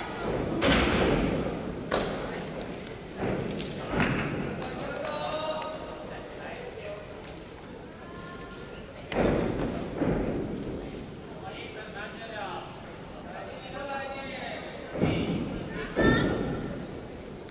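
A gymnast's apparatus bangs and thuds, echoing through a large hall.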